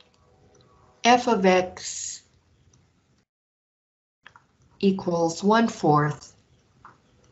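An elderly woman speaks calmly and closely into a microphone.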